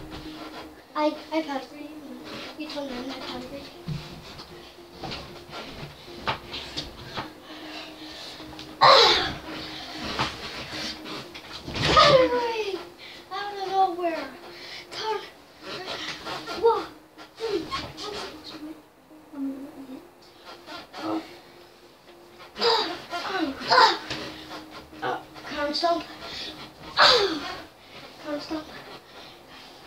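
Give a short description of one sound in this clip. Bedding rustles and thumps as children tumble on a bed.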